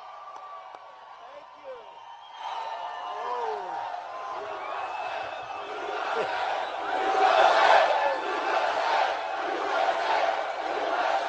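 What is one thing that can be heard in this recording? A large crowd cheers and shouts loudly outdoors, swelling over time.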